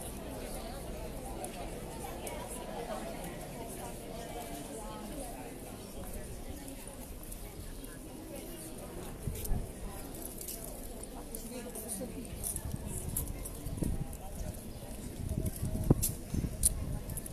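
Footsteps shuffle on stone paving.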